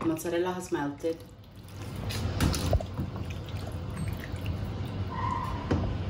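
A wooden spoon scrapes and stirs pasta in a pan.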